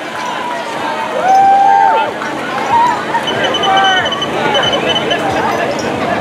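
Spectators cheer and shout as a runner approaches.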